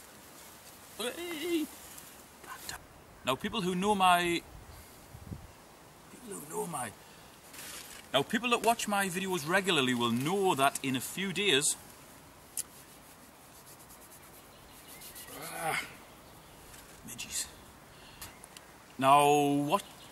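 A man talks calmly and close by, with pauses.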